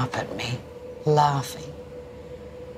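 An elderly woman speaks with emotion, close by.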